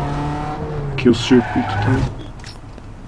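A car engine hums and revs.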